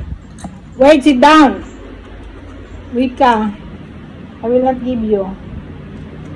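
An elderly woman speaks close to the microphone.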